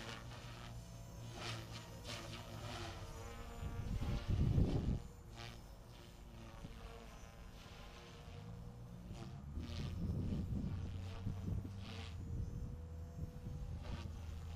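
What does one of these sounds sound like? Wind rumbles outdoors in gusts.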